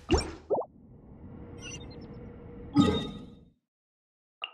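A game menu clicks and swooshes open.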